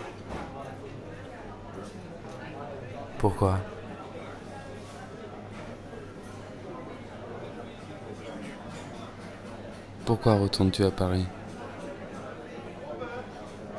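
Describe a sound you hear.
People chat in low murmurs in the background.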